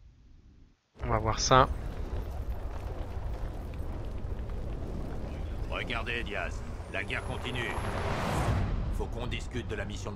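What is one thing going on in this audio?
Fires roar with a low, steady rumble.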